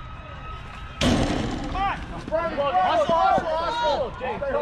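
Children and adults shout and cheer loudly outdoors.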